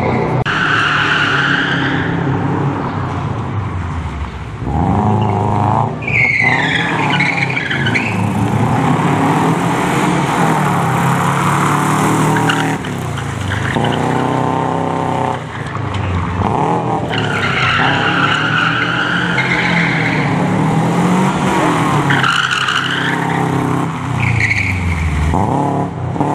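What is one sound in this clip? Tyres squeal loudly on tarmac.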